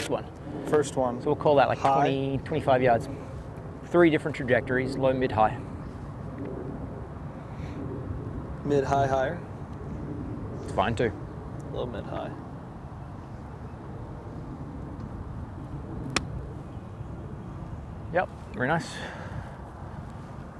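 A man speaks calmly and clearly through a close microphone.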